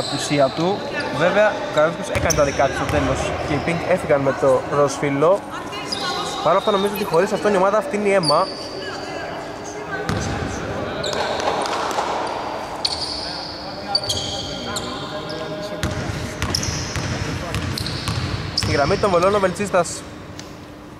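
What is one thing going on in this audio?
Young men talk and call out loudly in a large echoing hall.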